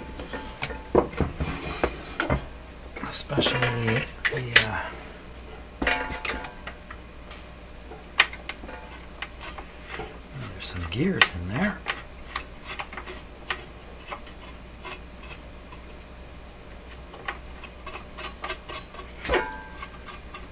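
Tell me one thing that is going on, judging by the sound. A metal chassis clunks and rattles as it is lifted and turned.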